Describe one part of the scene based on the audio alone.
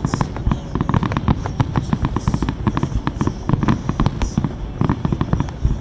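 Fireworks boom with deep thuds.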